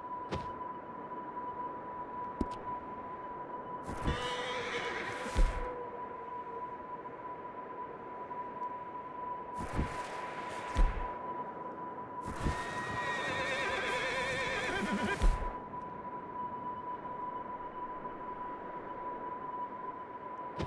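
Wind howls in a blizzard outdoors.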